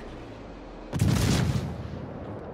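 A warship's heavy guns fire with a loud, booming blast.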